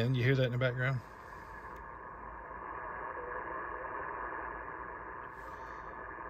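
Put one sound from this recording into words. Radio static hisses steadily through a loudspeaker.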